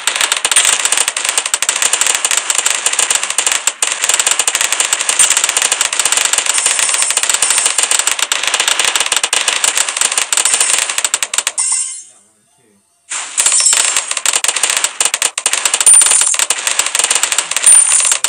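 Balloons pop in a rapid, crackling stream.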